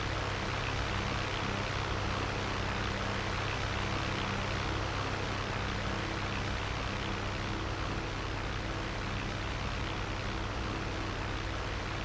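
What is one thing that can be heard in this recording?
A small propeller plane's engine drones steadily up close.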